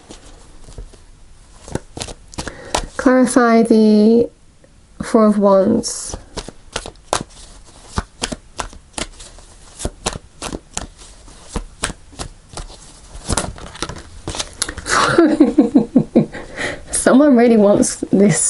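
Cards shuffle and slap softly between hands, close by.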